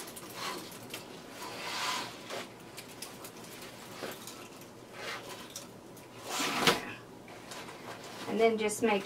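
Dry twigs and ribbon rustle and crackle as a wreath is handled.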